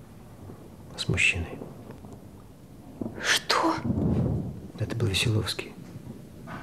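A woman speaks quietly and tensely, close by.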